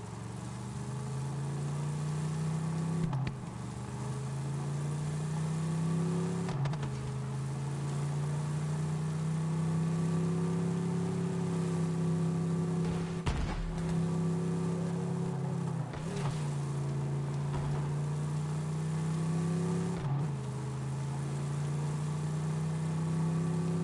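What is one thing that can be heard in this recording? A buggy engine drones steadily, dipping briefly now and then as it shifts gear.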